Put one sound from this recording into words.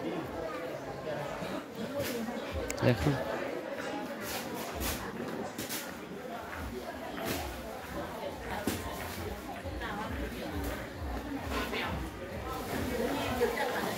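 Men and women chatter nearby in a busy crowd.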